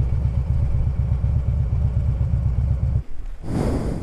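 A motorcycle engine idles close by, then cuts off.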